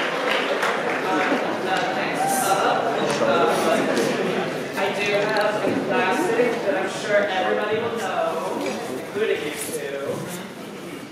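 Young people talk with animation in a large, echoing hall.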